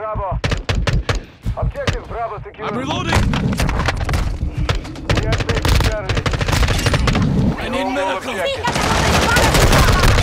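Rapid gunfire cracks in bursts.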